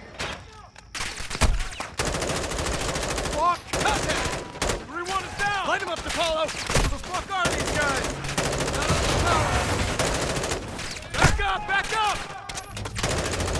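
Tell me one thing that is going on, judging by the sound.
Rapid gunfire rattles loudly nearby.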